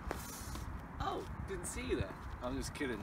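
A young man speaks breathlessly outdoors.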